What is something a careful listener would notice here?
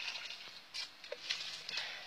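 Dry leaves rustle under a hand.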